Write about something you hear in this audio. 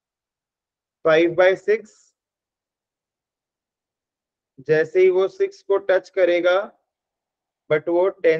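A young man speaks calmly into a microphone, explaining in short bursts with pauses.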